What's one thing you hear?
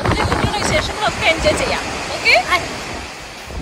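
A woman talks cheerfully close by.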